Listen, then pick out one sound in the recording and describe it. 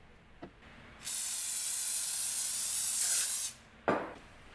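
Cooking spray hisses steadily from a can.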